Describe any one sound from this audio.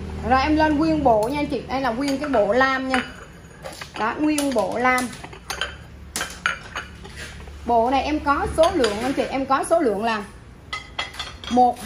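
Ceramic plates clink as they are set down on a hard surface.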